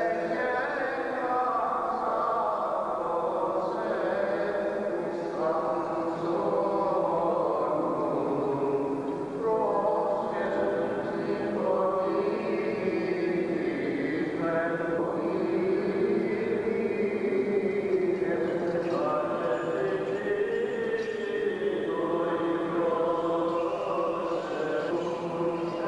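Several men chant together in a slow, drawn-out melody that echoes in a large hall.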